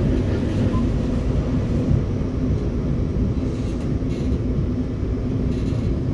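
A passing train rushes by close alongside.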